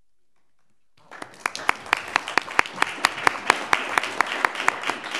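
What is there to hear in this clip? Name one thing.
People clap their hands in applause in a large room.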